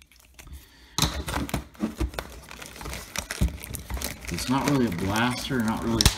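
Plastic wrap crinkles and rustles under fingers.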